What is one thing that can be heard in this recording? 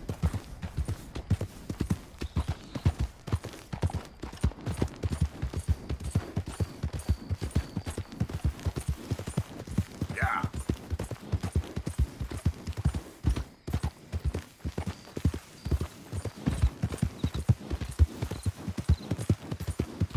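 Horse hooves thud rapidly at a gallop on soft ground.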